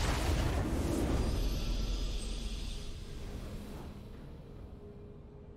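A triumphant game fanfare rings out and then fades away.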